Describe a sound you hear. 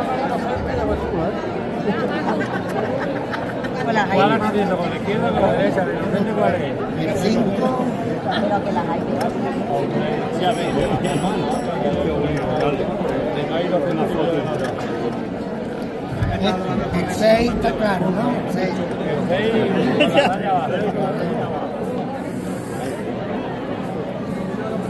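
A crowd of adults chatters and laughs all around, close by.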